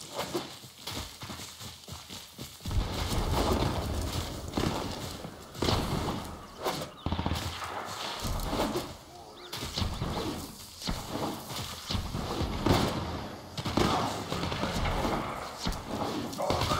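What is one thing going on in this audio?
Quick footsteps thud over grass.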